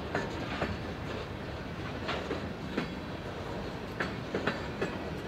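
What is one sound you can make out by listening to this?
Steel wheels clack and squeal on the rails.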